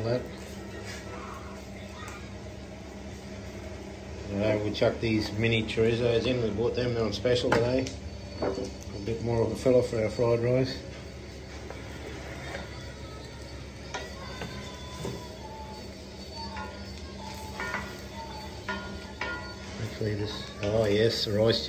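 A wooden spatula scrapes and stirs in a frying pan.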